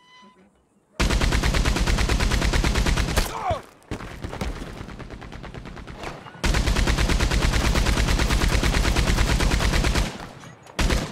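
A mounted machine gun fires in long, rapid bursts.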